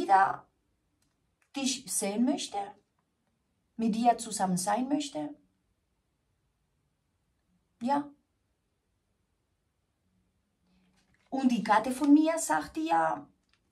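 A woman speaks close to a microphone, expressively and in bursts with pauses.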